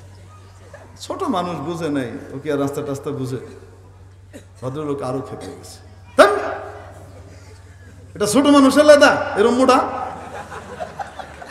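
A man speaks with animation through a microphone and loudspeakers, his voice echoing.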